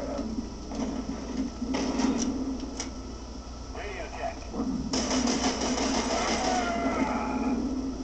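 Gunshots fire in quick bursts from a loudspeaker.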